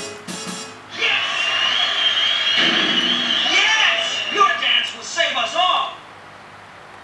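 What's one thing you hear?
Electronic game sound effects play loudly, then stop.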